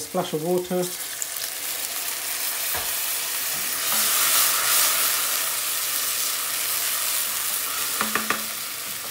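Water hisses loudly as it is poured into a hot pan.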